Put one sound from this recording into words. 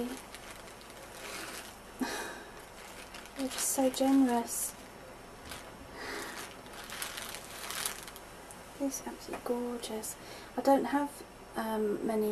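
A plastic bag crinkles and rustles up close.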